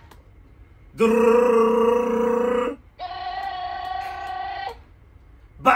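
A young man imitates a drumroll with his voice.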